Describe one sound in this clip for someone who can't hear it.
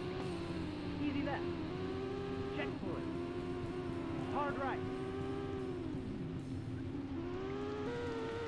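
A rally car engine drones steadily, its pitch rising and falling with the gears.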